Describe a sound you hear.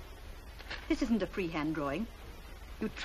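A woman speaks calmly and gently.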